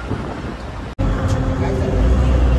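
A man talks on a phone nearby.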